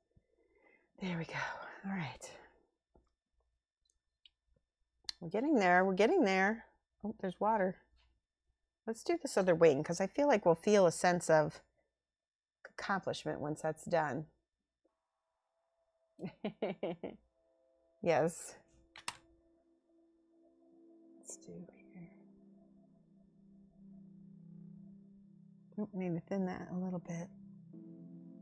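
A woman talks calmly into a close microphone.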